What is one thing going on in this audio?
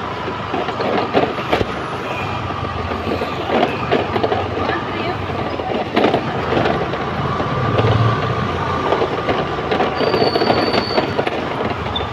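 A crowd of people talks and shouts nearby.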